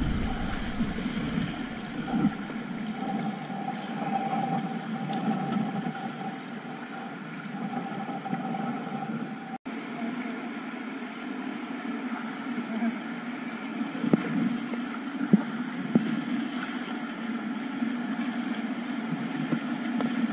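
River water rushes and splashes steadily over rocks nearby.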